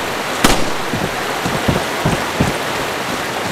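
Heavy footsteps clang on a metal walkway.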